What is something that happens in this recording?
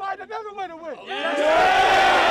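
A man speaks loudly to a group up close.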